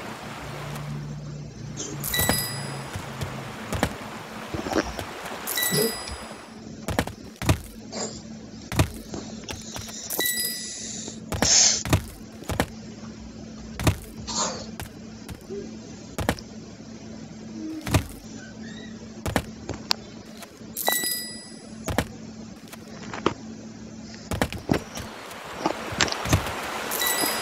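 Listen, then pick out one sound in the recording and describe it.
A short game blip sounds with each jump.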